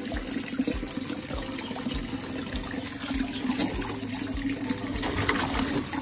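Water splashes as a fish thrashes in a shallow tank.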